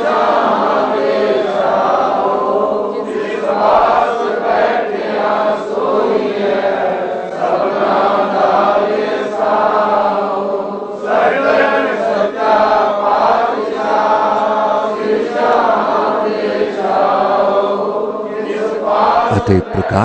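An elderly man chants a hymn through a microphone, slowly and steadily.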